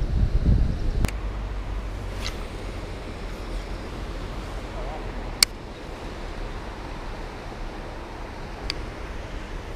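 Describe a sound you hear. A fishing reel clicks sharply.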